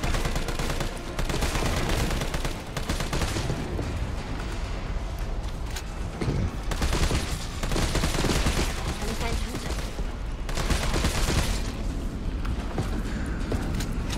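Gunfire bursts rapidly.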